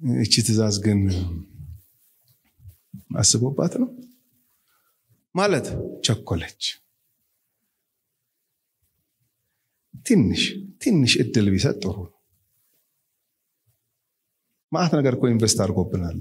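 A man preaches with animation through a microphone and loudspeakers, pausing between phrases.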